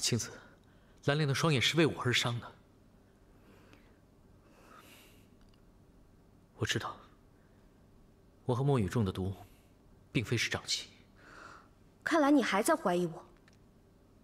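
A young man speaks with surprise and concern, close by.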